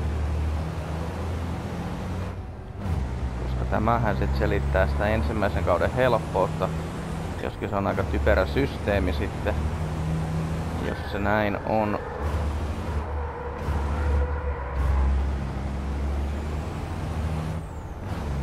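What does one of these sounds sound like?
A heavy truck engine drones steadily, rising and falling as it shifts gears.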